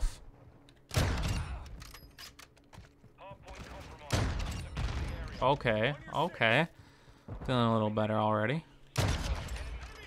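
A sniper rifle fires loud single shots with a booming echo.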